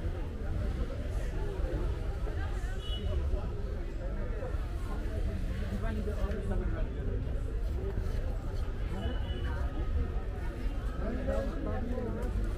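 A crowd of men and women chatter all around indoors.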